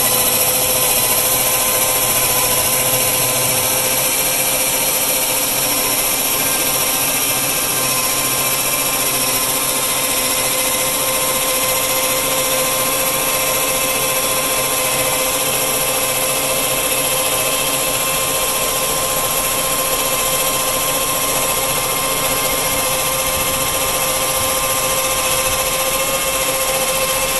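A band sawmill whines steadily as it cuts through a log.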